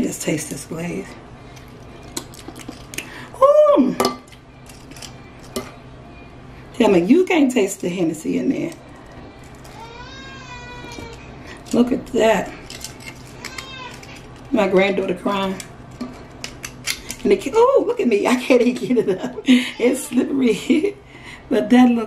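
Metal tongs click and clack as food is moved onto a plate.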